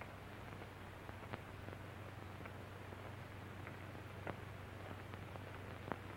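Footsteps tread slowly on pavement.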